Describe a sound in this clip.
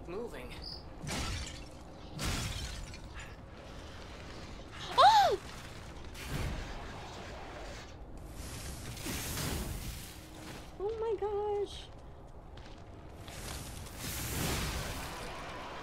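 Blades swing and clash in combat with heavy whooshes and thuds.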